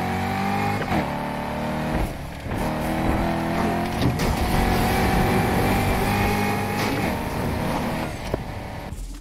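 A sports car engine roars at high revs as it accelerates.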